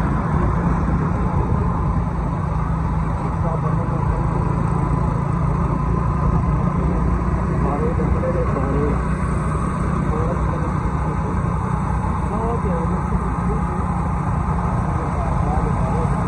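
Tyres roll over smooth pavement.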